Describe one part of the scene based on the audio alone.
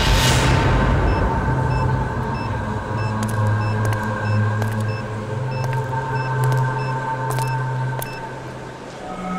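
Footsteps approach slowly on hard ground.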